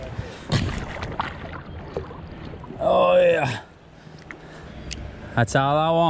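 Shallow river water swirls and laps around legs.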